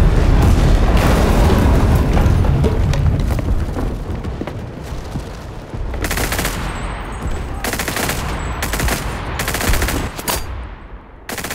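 A rifle fires loud shots in quick bursts.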